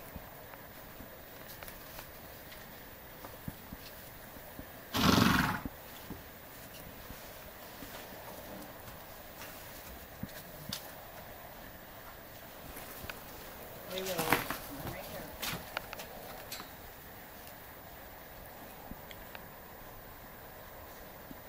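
A horse's hooves thud and shuffle on straw.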